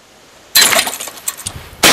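A clay target thrower snaps as it launches.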